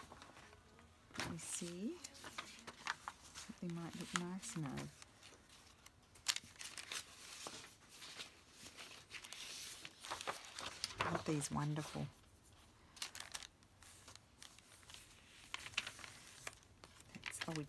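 Paper rustles and crinkles as pages are handled and turned.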